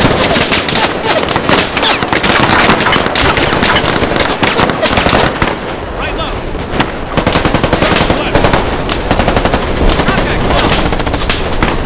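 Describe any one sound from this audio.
Rifles fire in sharp bursts.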